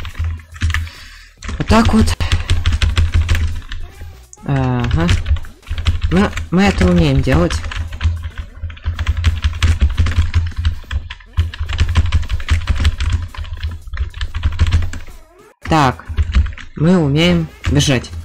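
Game music plays with a thumping beat.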